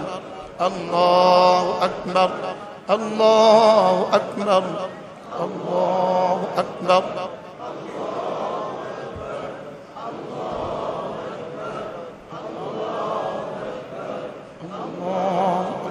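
A man chants in a long, melodic voice close to a microphone.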